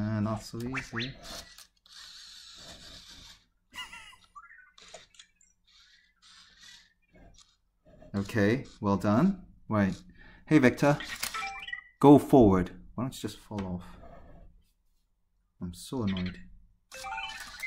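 A small robot toy chirps and warbles in bright electronic tones.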